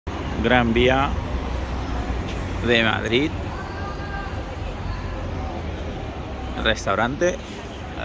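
Traffic rumbles steadily on a busy city street.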